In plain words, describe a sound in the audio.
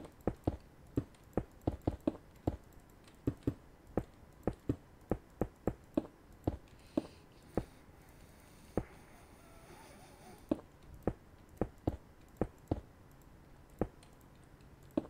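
Stone blocks thud as they are placed in a video game.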